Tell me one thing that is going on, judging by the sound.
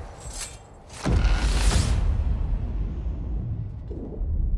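A loud magical whoosh bursts out and slowly fades.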